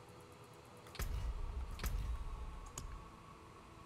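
A game menu clicks as tabs switch.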